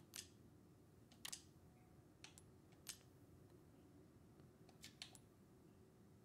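Short soft clicks sound as menu items are selected.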